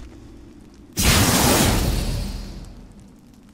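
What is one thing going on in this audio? A heavy blast roars, rumbles and slowly fades.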